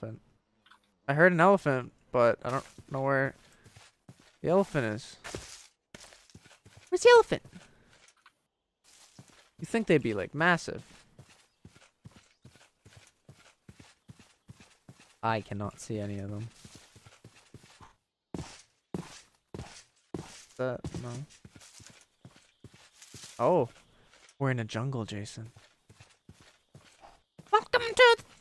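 Footsteps crunch steadily on grass.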